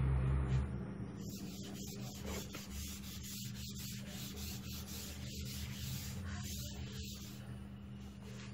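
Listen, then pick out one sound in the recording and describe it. A cloth eraser rubs and swishes across a board.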